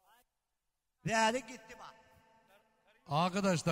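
A middle-aged man sings loudly into a microphone, holding long notes.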